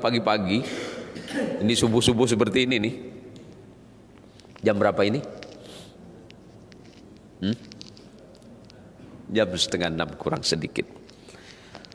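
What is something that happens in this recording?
A man speaks with animation into a microphone in an echoing room, in bursts with pauses.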